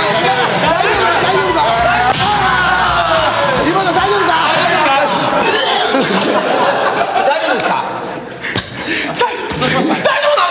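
Several young women chatter excitedly together.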